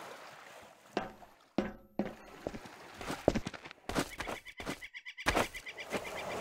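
Footsteps thud and scrape on concrete.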